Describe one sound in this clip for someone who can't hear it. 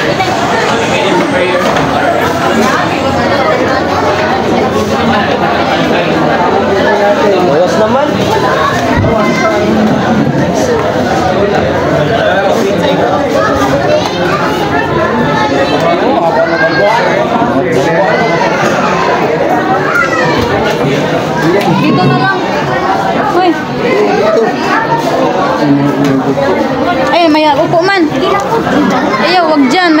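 A crowd of people chatter all around in a busy, echoing room.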